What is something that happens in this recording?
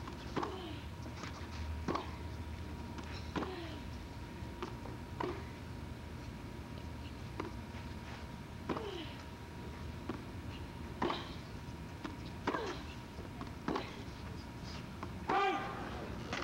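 A tennis ball is struck back and forth with rackets.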